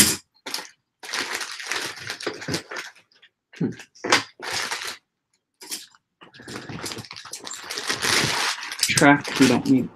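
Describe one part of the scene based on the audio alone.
Plastic wrapping crinkles and rustles.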